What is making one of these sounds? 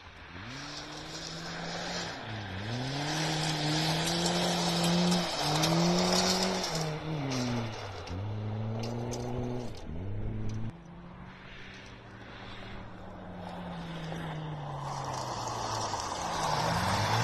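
A car engine revs hard, rising and falling as gears change.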